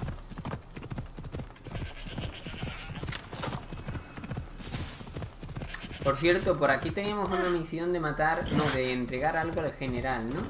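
A horse's hooves thud steadily on the ground at a gallop.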